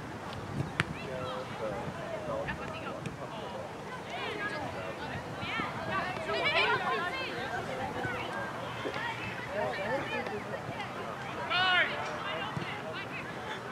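Adult spectators chatter and call out nearby, outdoors.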